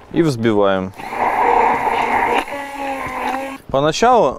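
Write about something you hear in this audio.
A hand blender whirs loudly in a jar.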